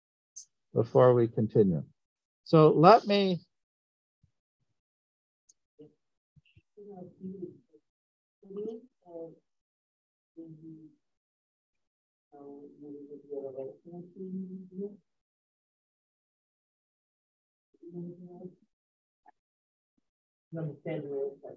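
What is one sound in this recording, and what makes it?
A man speaks calmly through an online call, with pauses.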